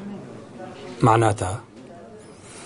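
A man speaks briefly and quietly nearby.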